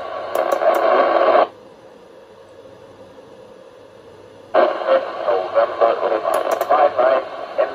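Short high beeps sound from a radio receiver.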